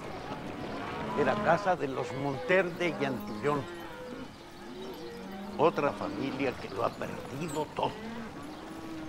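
An elderly man speaks earnestly, close by.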